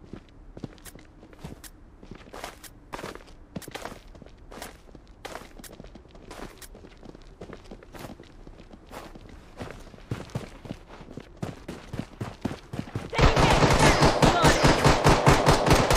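Automatic rifle fire rattles in short bursts.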